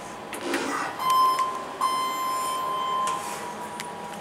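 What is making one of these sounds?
An elevator beeps with a steady tone.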